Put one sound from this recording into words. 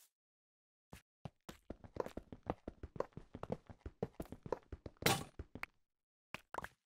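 A pickaxe chips at stone blocks in a video game.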